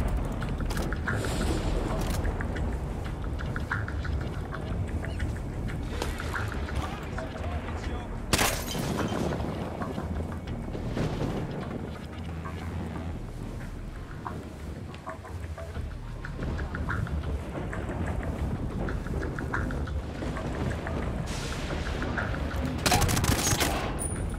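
Soft footsteps patter quietly on a hard floor.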